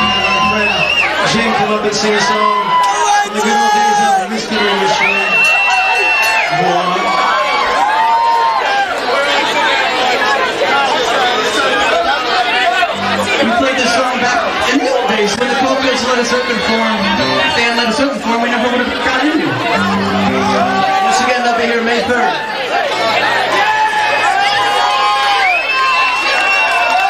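A rock band plays loudly through amplifiers.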